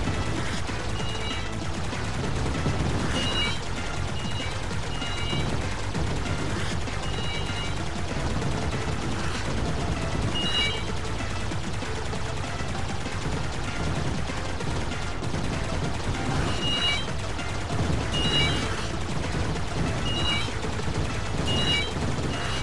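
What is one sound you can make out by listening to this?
Electronic explosions burst and pop.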